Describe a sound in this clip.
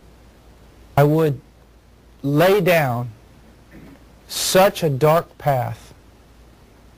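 A man speaks calmly and closely in short phrases.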